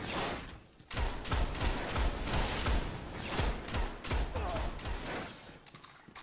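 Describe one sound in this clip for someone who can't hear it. A rifle fires loud, booming shots in quick succession.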